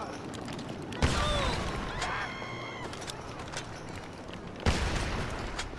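A pistol fires two loud shots.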